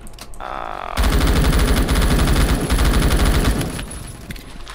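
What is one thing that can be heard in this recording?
A rifle fires rapidly in a long burst.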